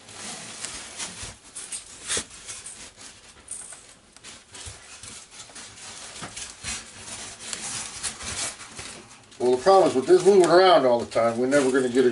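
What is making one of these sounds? Small parts click and scrape under hand work close by.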